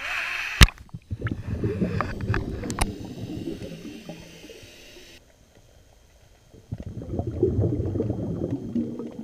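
Water gurgles and rumbles, heard muffled from underwater.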